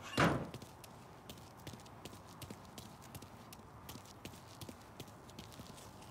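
Footsteps tap quickly on pavement outdoors.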